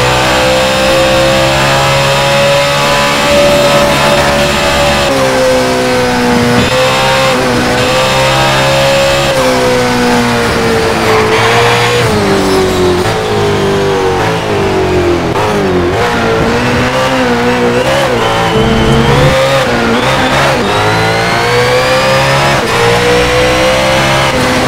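A racing car engine roars loudly, its pitch rising and falling as the car speeds up and slows down.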